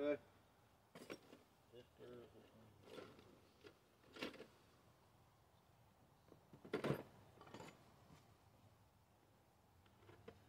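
Metal parts clink and rattle in a box.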